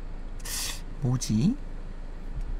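A young man says a few short words close to a microphone.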